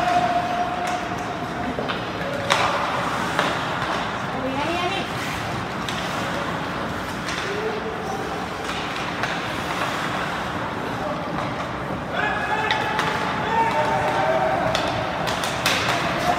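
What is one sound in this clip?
Spectators chatter in a large echoing rink.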